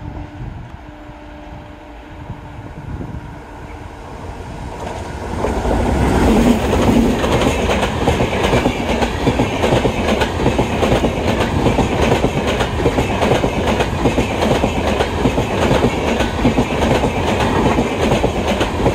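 A train approaches and rushes past close by with a loud roar.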